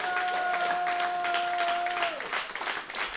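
A band holds a final sustained note that ends abruptly.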